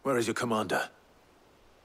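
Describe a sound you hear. A man asks a question calmly.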